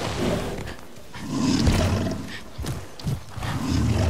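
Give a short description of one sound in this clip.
A large creature lands with a heavy thud.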